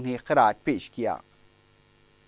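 A man speaks briefly and clearly.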